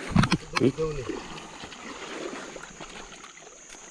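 Shallow water splashes as a person wades through a stream.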